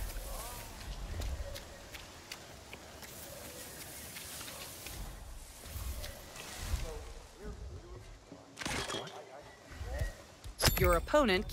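Footsteps rustle through dense leaves and undergrowth.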